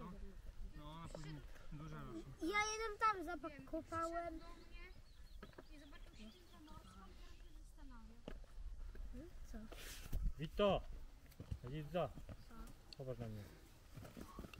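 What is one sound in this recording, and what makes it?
A child talks loudly at a distance outdoors.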